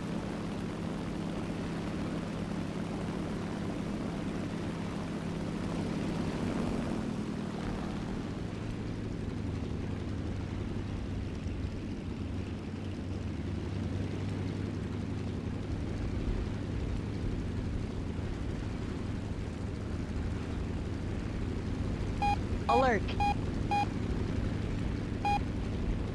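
A radial piston-engine fighter plane drones in flight.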